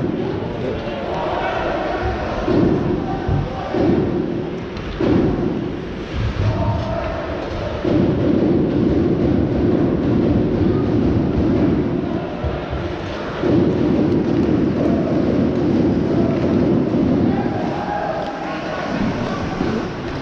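A crowd murmurs and chants in a large echoing arena.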